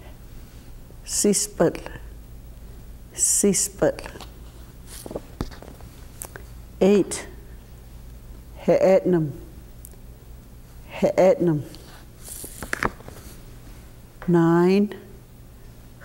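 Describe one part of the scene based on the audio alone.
Sheets of paper rustle as they are flipped over.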